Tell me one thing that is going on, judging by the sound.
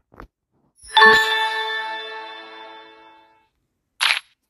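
A bright chime rings out and slowly fades.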